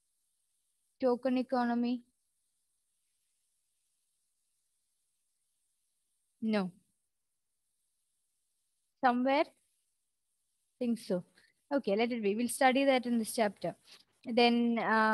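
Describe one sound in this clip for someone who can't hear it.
A young woman speaks close into a headset microphone, in short bursts with pauses.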